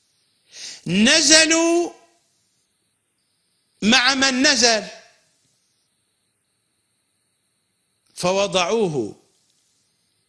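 A middle-aged man recites in a slow, melodic chant, close to a microphone.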